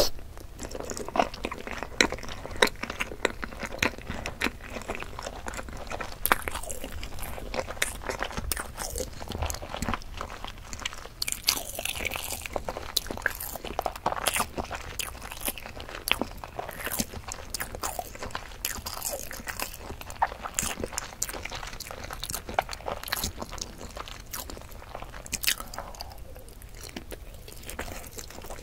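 A woman chews boiled egg close to a microphone, with wet mouth sounds.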